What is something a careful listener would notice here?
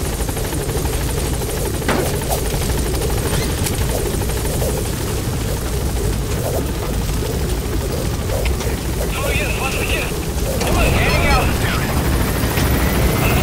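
Wind roars steadily outdoors.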